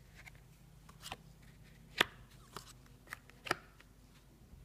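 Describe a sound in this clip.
Cards slap and slide onto a cloth surface.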